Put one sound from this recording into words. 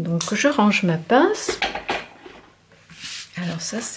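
Hands slide and press a paper card on a table.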